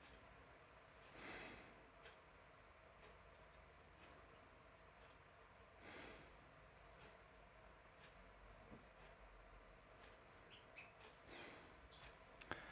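An elderly man breathes slowly and deeply.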